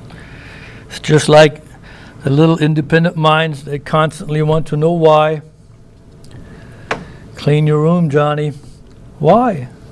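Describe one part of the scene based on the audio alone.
A middle-aged man speaks slowly and calmly into a microphone, with pauses.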